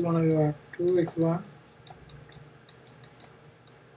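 A stylus taps lightly on a tablet.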